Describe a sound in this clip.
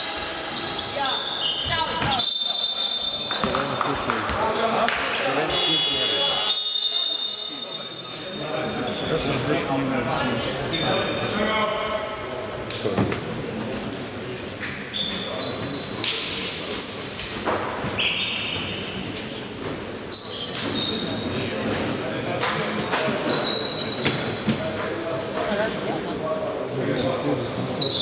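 Young men shout and call out across the hall.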